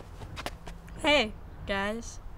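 A teenage boy speaks cheerfully up close.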